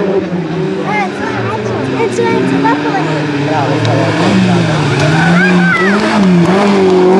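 Tyres squeal on tarmac as a car takes tight bends.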